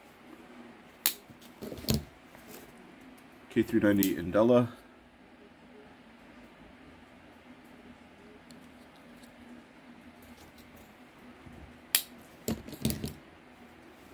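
A folding knife is handled with light clicks and rustles.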